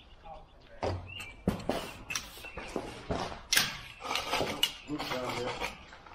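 A tripod's metal legs knock and rattle as it is picked up and carried.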